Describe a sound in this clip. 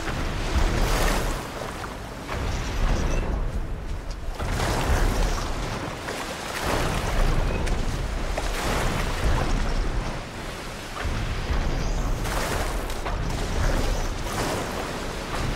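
Waves slosh and roll on open water.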